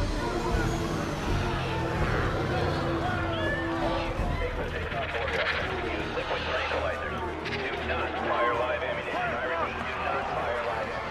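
A crowd of men and women shout and scream in panic.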